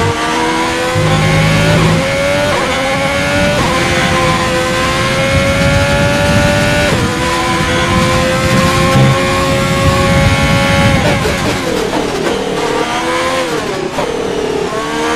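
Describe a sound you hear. A racing car engine screams at high revs, rising through the gears and dropping as it slows for a corner.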